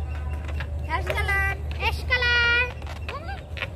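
A young girl squeals loudly close by.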